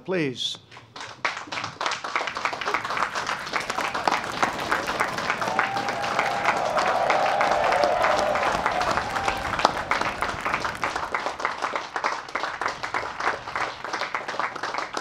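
A large crowd claps and applauds outdoors.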